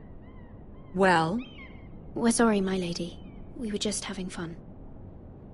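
A young woman speaks apologetically in a nervous voice.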